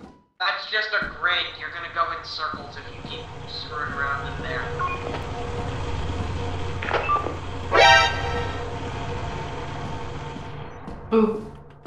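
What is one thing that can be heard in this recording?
A walkie-talkie hisses with static.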